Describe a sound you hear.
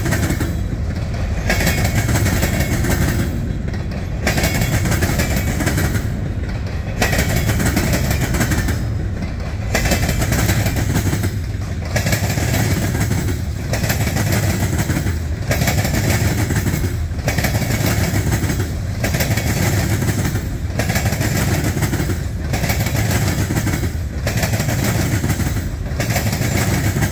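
A long freight train rumbles steadily past close by.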